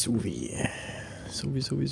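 Footsteps run quickly across a hard metal floor.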